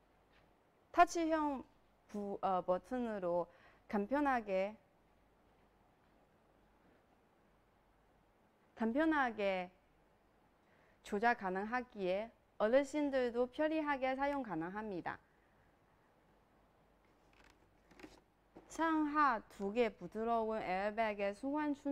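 A young woman speaks calmly and clearly close to a microphone, in short bursts with pauses.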